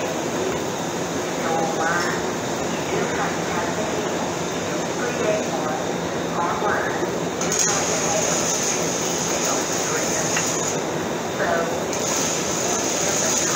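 An electric fan hums and blows steadily.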